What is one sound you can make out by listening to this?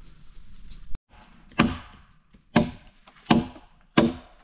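Wooden logs knock and thud against each other.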